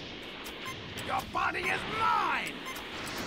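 Game sound effects chirp and sweep in quick bursts.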